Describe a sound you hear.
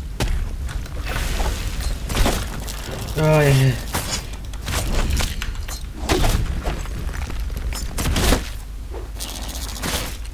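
Blades swish and strike in quick, repeated slashes.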